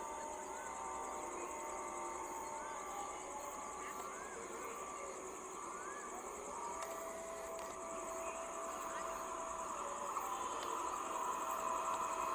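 A train approaches along the tracks, its rumble slowly growing louder.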